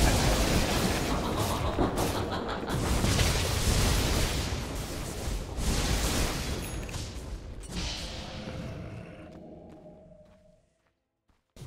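Magic blasts and clashing battle effects roar loudly, then fade away.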